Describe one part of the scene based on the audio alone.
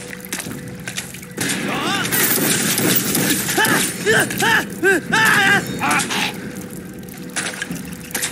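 Gunshots ring out and echo.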